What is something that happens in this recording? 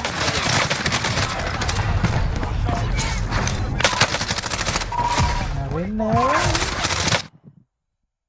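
Gunfire rattles loudly amid heavy noise.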